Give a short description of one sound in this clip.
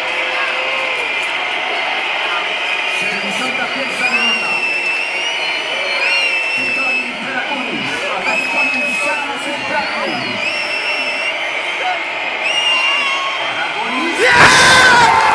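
A large outdoor crowd chants and sings loudly.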